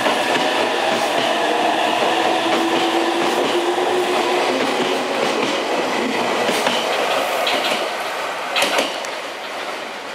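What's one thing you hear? A train rumbles past close by and slowly fades.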